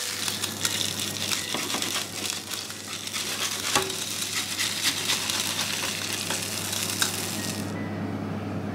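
Oil sizzles and crackles in a frying pan.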